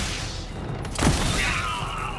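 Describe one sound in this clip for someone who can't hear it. An explosion booms with a hissing burst.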